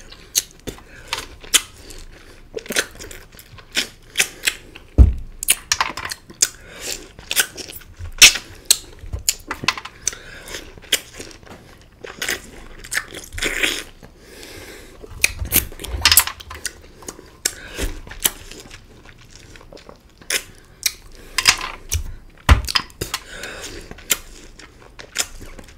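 Lime peels crunch and squelch as a man bites into them.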